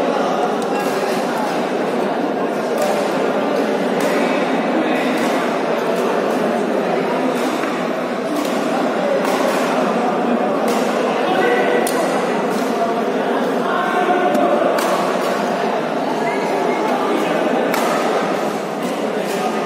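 Shuttlecocks are struck sharply with rackets.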